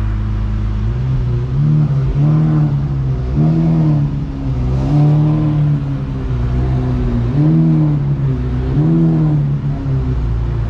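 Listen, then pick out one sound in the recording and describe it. A car engine revs up in short, repeated bursts.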